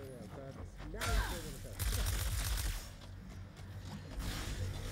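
Game sound effects crash and whoosh loudly.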